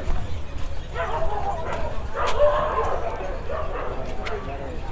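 People chatter in a murmur outdoors.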